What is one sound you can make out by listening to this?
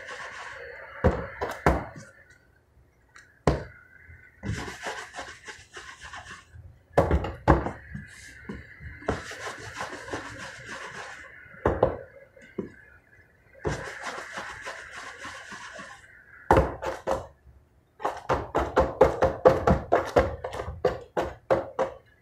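Dough balls thump onto a metal baking tray.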